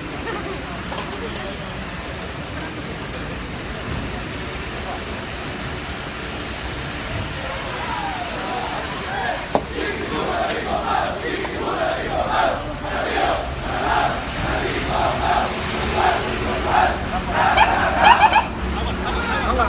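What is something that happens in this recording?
A truck engine idles and rumbles as the truck rolls slowly past close by.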